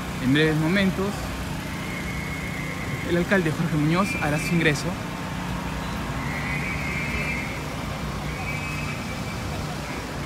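A car drives slowly past.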